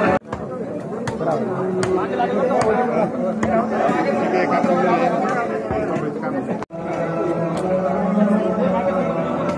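A crowd of men talk over one another nearby.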